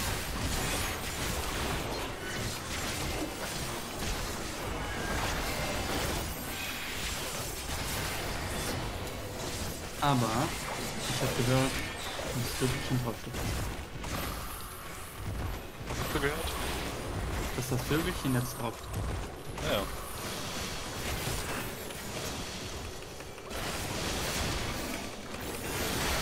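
Weapon blows hit a large monster again and again.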